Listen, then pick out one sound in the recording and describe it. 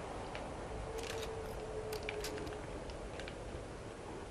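Gun gear clicks and rattles as a rifle is raised to aim.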